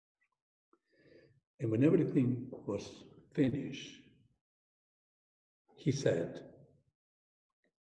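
A middle-aged man speaks calmly through a headset microphone, with pauses.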